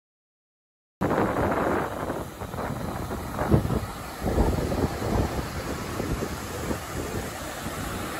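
Waves break and wash up on a beach.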